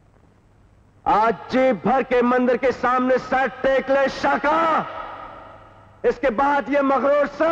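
A man shouts loudly and angrily.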